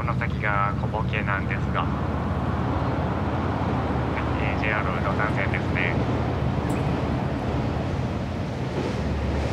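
Water washes against a moving boat's hull.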